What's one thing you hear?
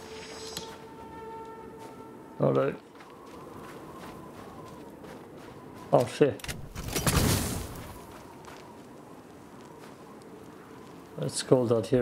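Flames crackle on burning plants.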